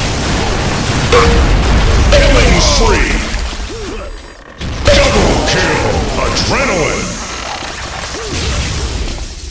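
A weapon fires crackling, zapping energy blasts.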